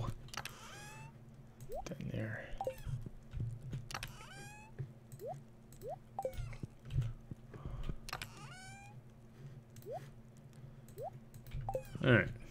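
Short bright chimes and clicks from a video game play again and again.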